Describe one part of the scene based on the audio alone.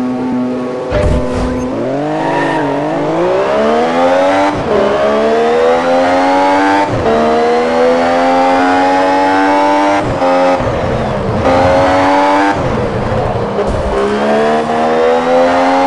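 A racing car engine roars and climbs in pitch through the gears, dropping briefly at each shift.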